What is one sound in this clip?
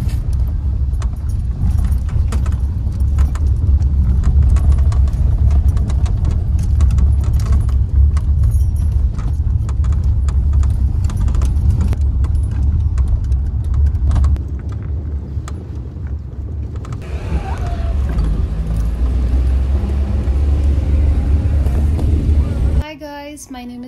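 A car engine rumbles steadily with road noise.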